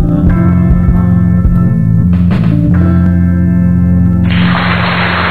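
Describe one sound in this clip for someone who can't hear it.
An electric guitar plays.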